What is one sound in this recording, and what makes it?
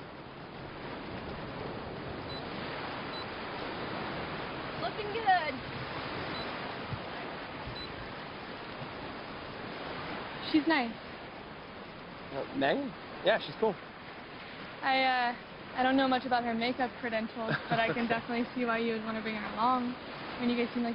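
Sea waves wash and splash nearby.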